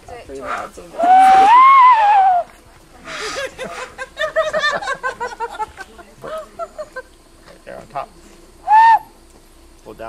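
A man blows a loud, hooting whistle through cupped hands.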